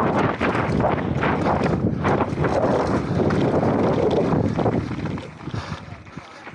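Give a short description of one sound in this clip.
Bicycle tyres rattle and crunch over a rough gravel track.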